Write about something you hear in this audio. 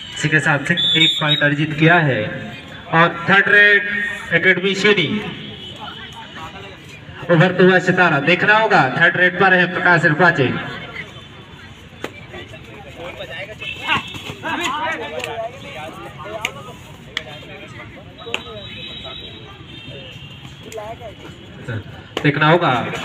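A young man chants loudly and rapidly in short bursts.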